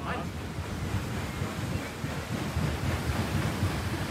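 A boat engine idles with a low, steady hum.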